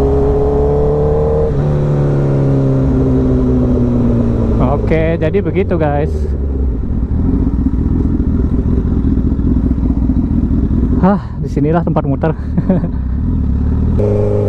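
A motorcycle engine hums steadily as the bike cruises along.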